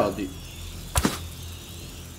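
A crossbow shot snaps sharply.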